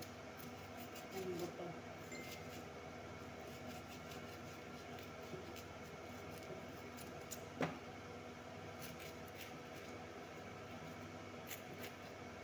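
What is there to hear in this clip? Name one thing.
A peeler scrapes the skin off a vegetable.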